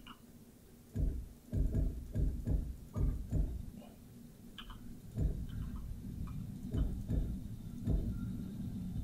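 Pipe segments thud into place one after another.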